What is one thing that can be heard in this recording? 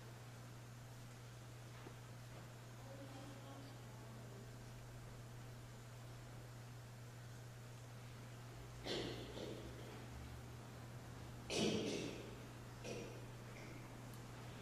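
A piano plays softly in a large echoing hall.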